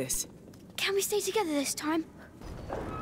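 A boy speaks briefly.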